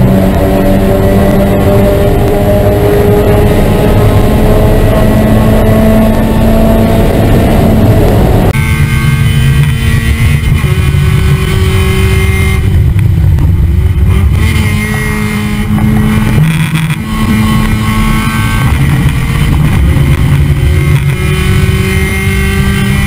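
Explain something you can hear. A race car engine roars loudly at high revs, rising and falling with gear changes.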